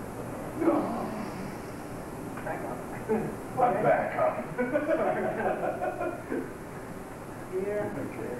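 A man talks, explaining calmly.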